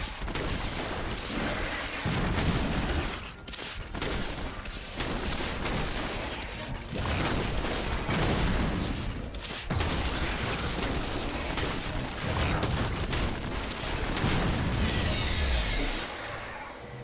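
Magic spells whoosh and crackle in a fierce fight.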